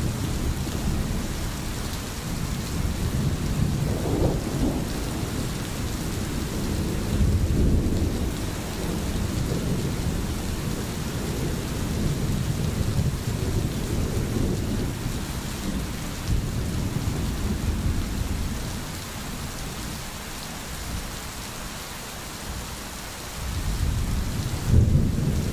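Rain falls steadily on trees and grass.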